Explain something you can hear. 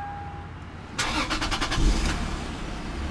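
A car engine cranks and starts up.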